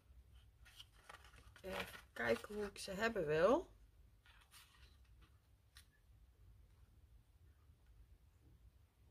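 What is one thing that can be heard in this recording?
Paper rustles softly as it is folded and handled.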